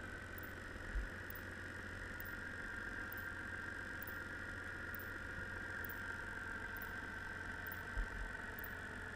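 A trap thuds dully against the seabed.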